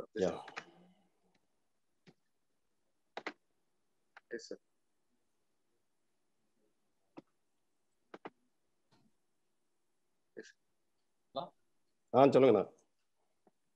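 A young man speaks haltingly over an online call.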